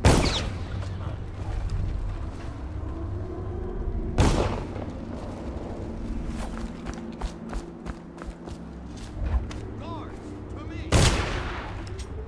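A body lands heavily with a loud thud, several times.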